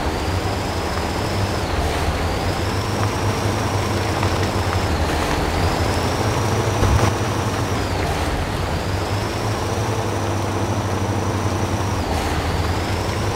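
A heavy truck engine rumbles steadily and whines as it revs.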